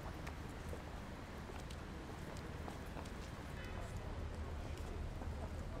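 Footsteps tap on wet paving stones.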